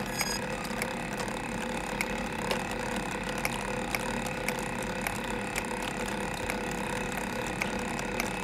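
A wooden clockwork mechanism clicks and clatters steadily.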